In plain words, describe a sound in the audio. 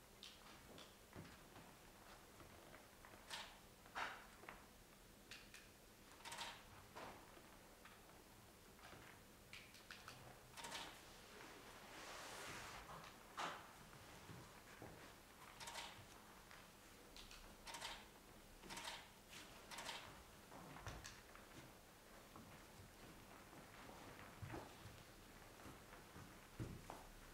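Feet thump and shuffle on a floor.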